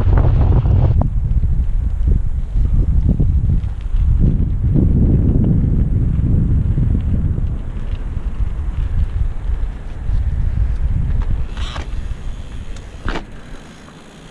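Bicycle tyres roll over rough pavement.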